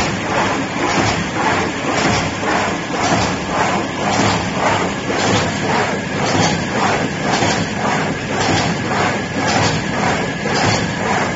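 A machine runs with a loud, rapid rhythmic clatter.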